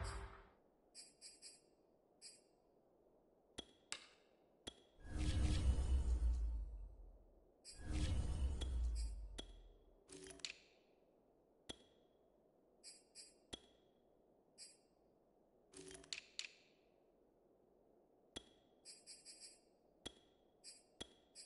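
Short soft clicks tick as menu choices change.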